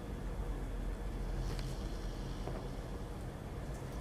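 A magazine is set down on a table with a soft slap.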